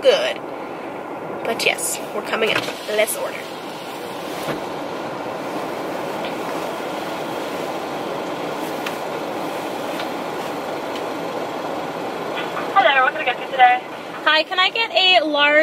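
A car engine and tyres hum steadily on the road.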